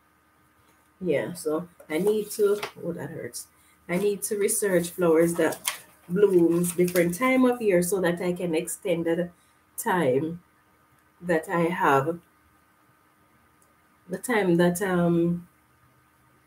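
A middle-aged woman talks calmly and with animation close to a microphone.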